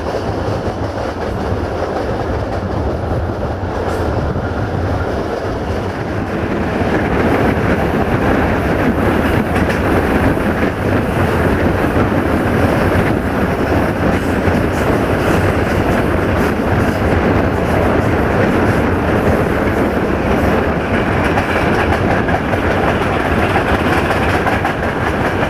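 A train rumbles steadily along the tracks, its wheels clattering.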